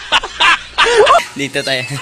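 A young man laughs close by.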